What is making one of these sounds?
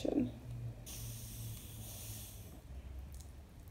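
A spray bottle hisses as it sprays.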